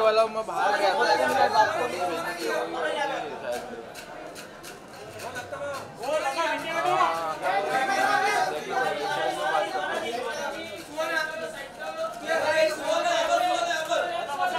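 Several men shout and call out loudly nearby.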